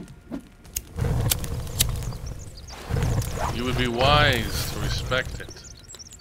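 A small fire flares up and crackles.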